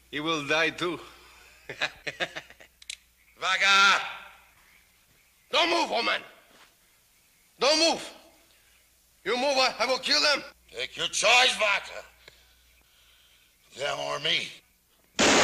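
A second man answers in a gruff voice.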